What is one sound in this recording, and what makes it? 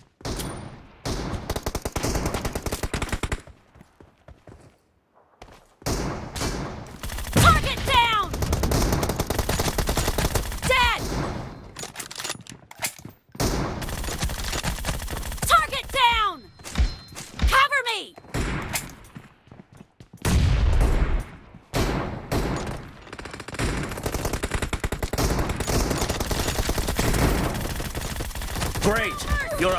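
Rifles fire in rapid bursts of gunshots.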